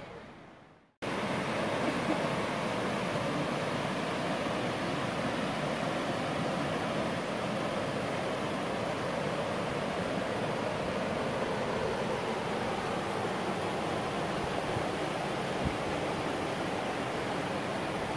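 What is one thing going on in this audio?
A stream rushes over rocks and small waterfalls.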